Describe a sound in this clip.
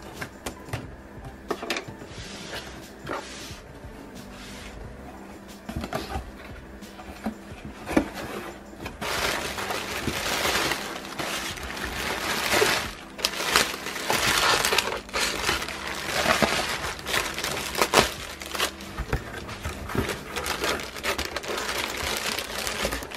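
Cardboard flaps scrape and thump as a box is opened.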